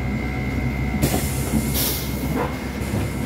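A bus door opens with a pneumatic hiss.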